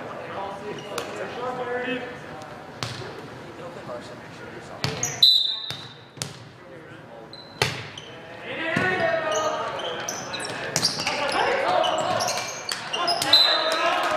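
A volleyball thumps off players' hands in a large echoing gym.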